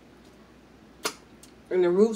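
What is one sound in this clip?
Crab shell cracks sharply between fingers.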